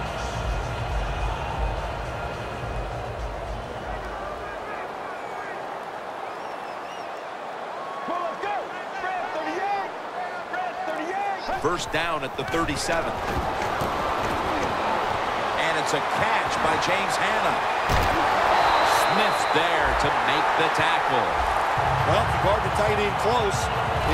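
A large stadium crowd roars, then swells into loud cheering.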